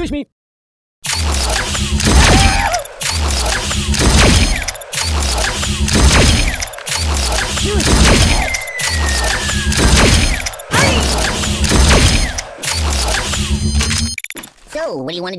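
A toy laser gun fires in rapid, pulsing bursts.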